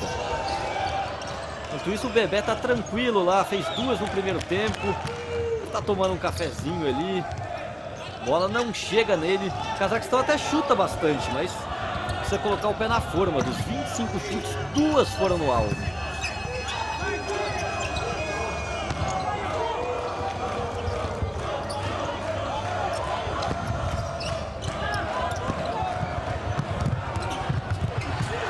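A futsal ball is kicked on an indoor court.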